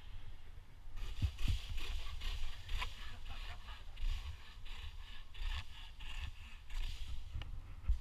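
A handsaw rasps quickly through a branch.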